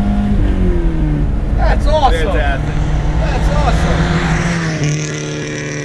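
A car engine hums steadily from inside the car.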